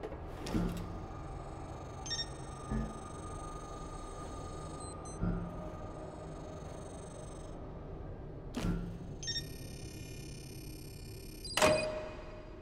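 A handheld electronic device hums and beeps.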